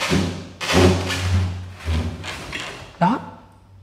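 A freezer lid creaks open.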